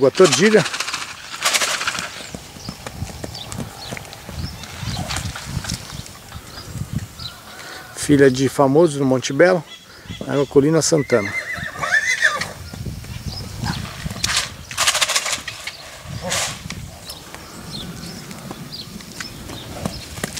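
A horse trots on soft sand with muffled hoofbeats.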